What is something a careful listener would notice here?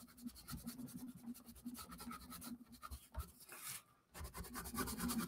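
A colored pencil scratches rapidly across paper.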